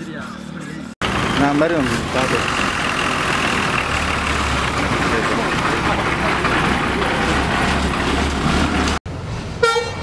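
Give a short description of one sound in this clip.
A bus engine rumbles as the bus drives along.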